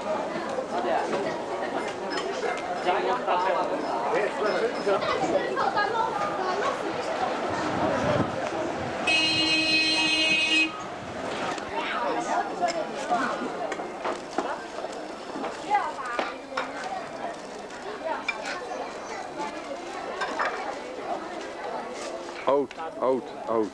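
A crowd of men and women chatter nearby outdoors.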